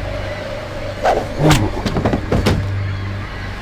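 A baton strikes a body with heavy thuds.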